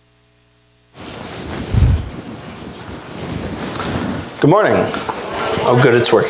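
A man speaks into a microphone over a loudspeaker in an echoing room.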